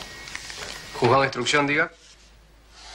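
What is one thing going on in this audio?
A man answers a telephone, speaking calmly.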